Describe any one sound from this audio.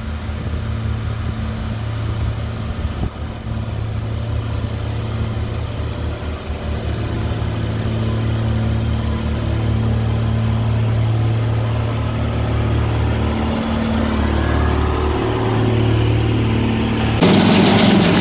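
A grader's diesel engine rumbles steadily close by.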